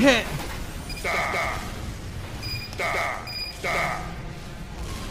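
Game menu beeps chime in short bursts.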